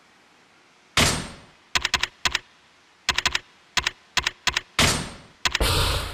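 Short menu clicks and beeps sound in quick succession.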